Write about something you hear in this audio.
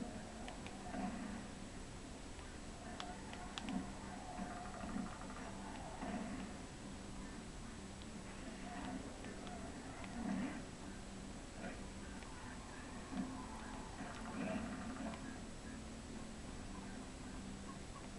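A video game kart engine hums steadily through a television speaker.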